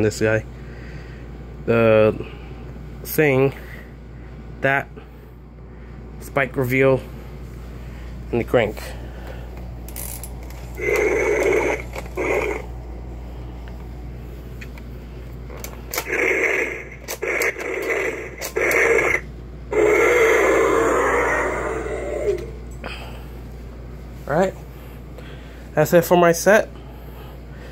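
A toy dinosaur lets out electronic roars, again and again.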